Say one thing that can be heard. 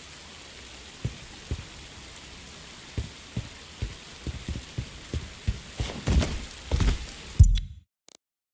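Footsteps thud on wet ground.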